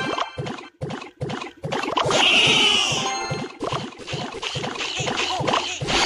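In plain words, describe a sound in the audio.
Game battle sound effects clash and thud.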